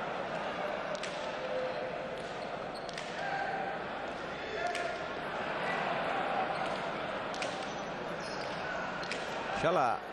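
A hard ball smacks against a wall and the floor in a large echoing court, again and again.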